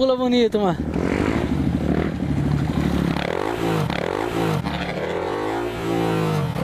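A second dirt bike idles close by.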